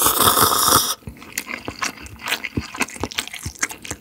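A man chews wetly close to a microphone.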